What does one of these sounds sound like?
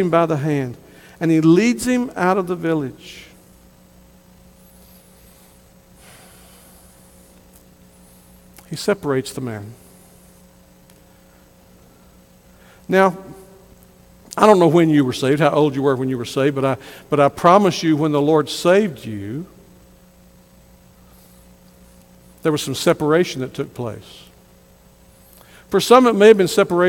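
A middle-aged man preaches through a microphone with animation, pausing between phrases.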